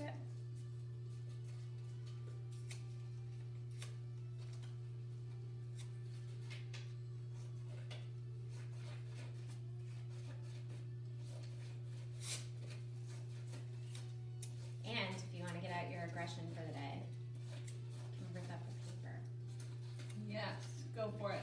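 Scissors snip paper.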